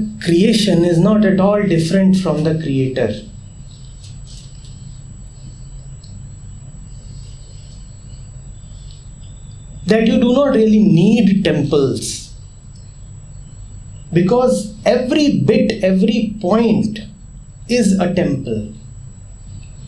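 A man speaks calmly and thoughtfully into a nearby microphone, with pauses.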